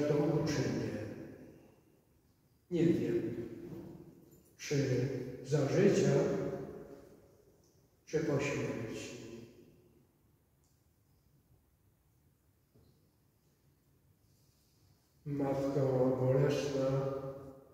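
A man chants slowly through a microphone, echoing in a large reverberant hall.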